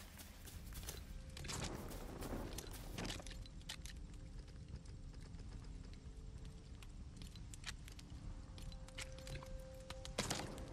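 Soft game menu clicks tick now and then.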